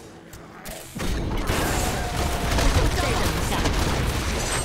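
Fiery spell blasts roar and crackle.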